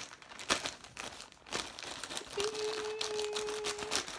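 Scissors cut through a plastic bag.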